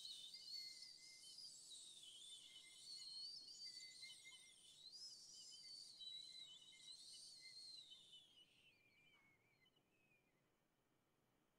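A flute plays a high, winding melody up close, then fades away.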